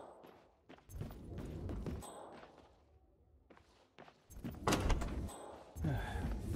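Footsteps walk on a wooden floor.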